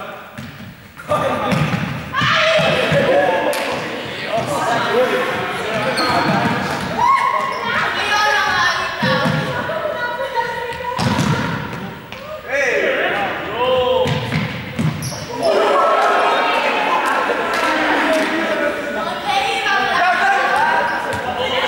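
Young people chatter and call out in a large echoing hall.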